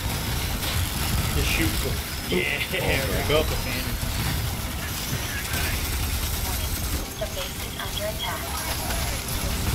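Gunfire booms and rattles rapidly from a game.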